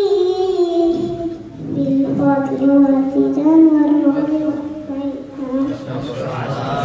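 A young girl chants in a high, drawn-out voice through a microphone in an echoing hall.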